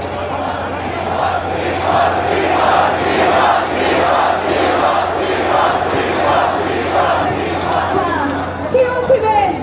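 A large crowd cheers and sings along.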